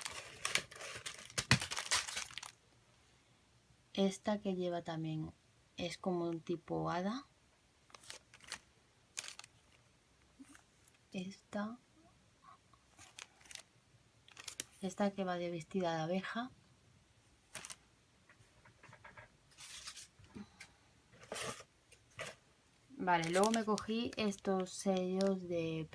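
Plastic packets crinkle and rustle as they are handled.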